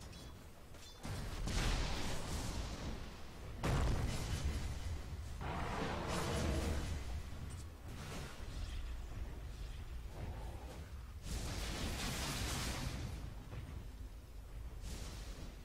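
Game battle sound effects crash and whoosh in bursts.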